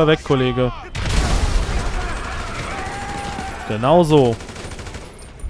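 Gunshots ring out close by.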